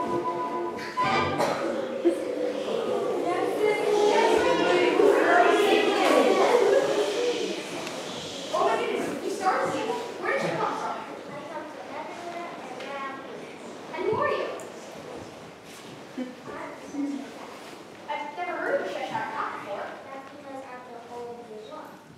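A young woman speaks into a microphone through loudspeakers in a large echoing hall.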